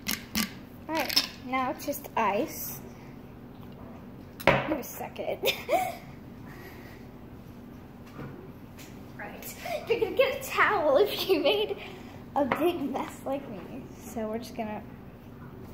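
A young girl talks cheerfully close by.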